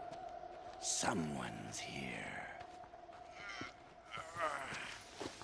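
A creature groans and snarls nearby.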